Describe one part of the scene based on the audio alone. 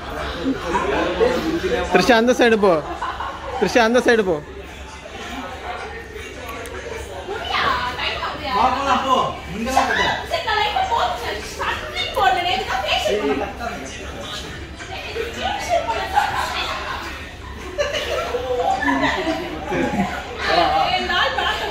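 Young people laugh loudly nearby.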